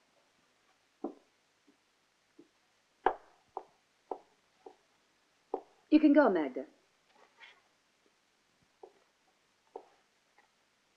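Footsteps click across a hard floor.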